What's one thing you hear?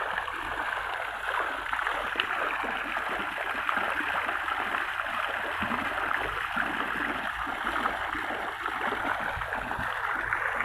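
Water splashes and trickles steadily into a pond.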